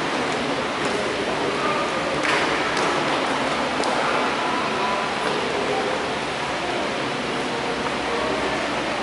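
A man reads aloud calmly in a large echoing room.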